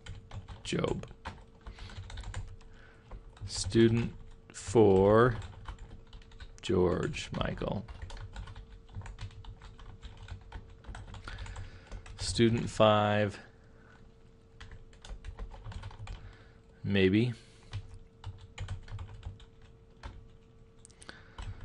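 Keys clatter on a keyboard in quick bursts.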